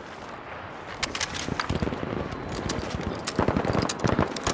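A rifle bolt clacks as it is worked.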